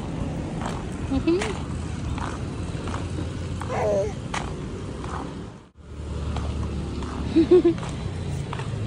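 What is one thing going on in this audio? A baby babbles and coos.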